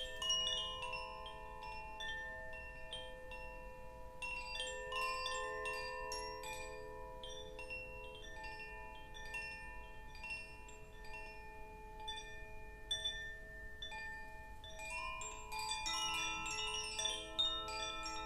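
A rain stick rattles and tinkles as it is tilted back and forth.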